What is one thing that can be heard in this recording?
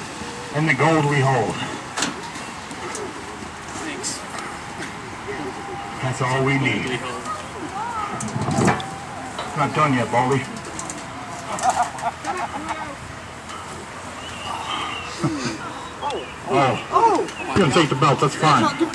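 Several men talk and call out loudly outdoors.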